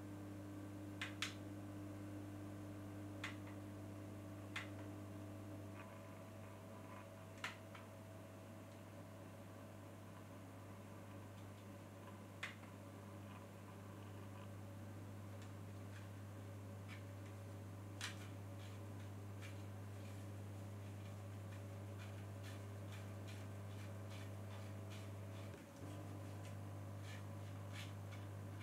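Buttons on a small device click under a finger.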